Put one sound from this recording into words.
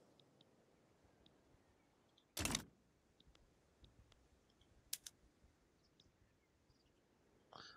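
Short interface clicks sound as menus open and close.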